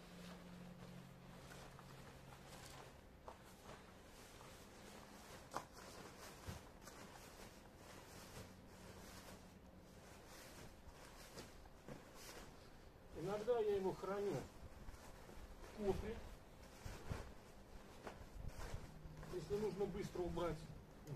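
Fabric rustles as a bag cover is handled.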